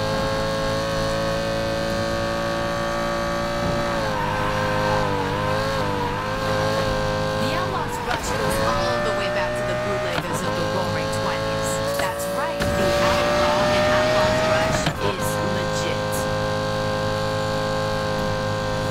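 A racing car's engine roars steadily at high speed.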